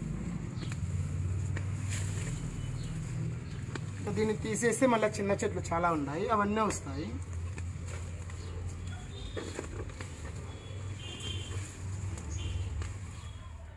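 Leafy plants rustle as a man picks vegetables by hand.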